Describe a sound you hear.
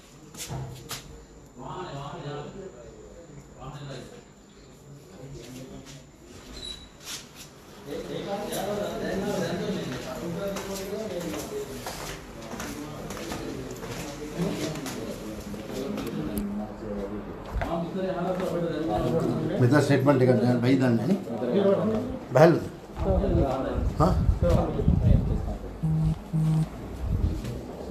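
Handling noise rustles and bumps against the microphone.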